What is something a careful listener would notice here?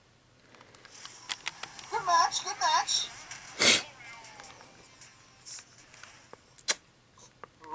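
A handheld game console plays short electronic sound effects through its small speaker.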